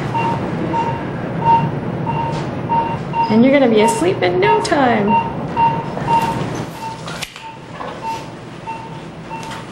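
A heart monitor beeps steadily in a regular rhythm.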